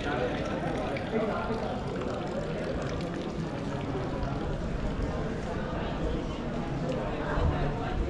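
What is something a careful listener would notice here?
Young adults chat faintly in the distance outdoors.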